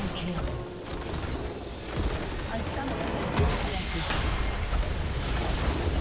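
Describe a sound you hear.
Game battle effects crash and boom loudly.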